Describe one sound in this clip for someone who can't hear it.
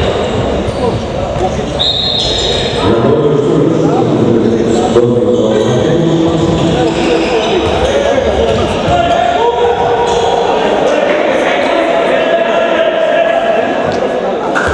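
Young men shout and call out across a large echoing hall.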